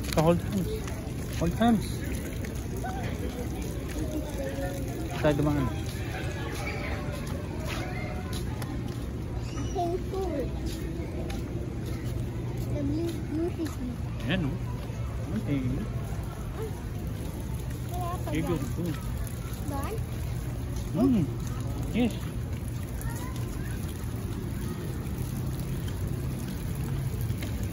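Footsteps scuff on paving stones.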